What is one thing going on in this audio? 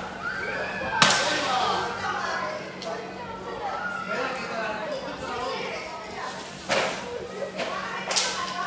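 Flower pots smash loudly on a paved street.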